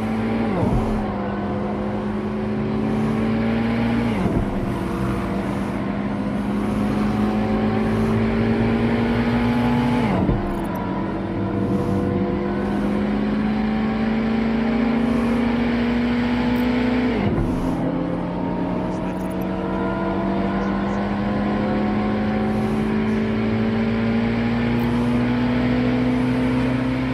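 A car engine hums steadily, rising in pitch as it speeds up and dropping sharply at each gear change.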